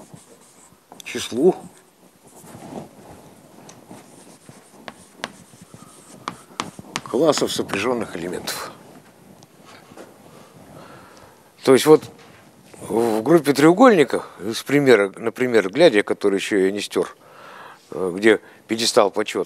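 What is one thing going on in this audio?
An elderly man lectures with animation in a room with a slight echo.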